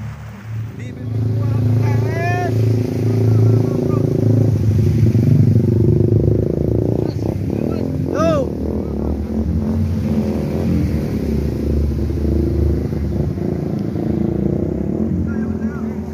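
A motorbike engine rumbles as it rides through water.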